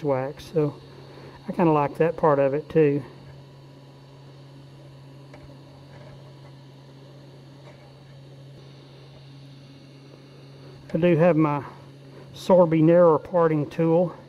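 A wood lathe hums steadily as it spins.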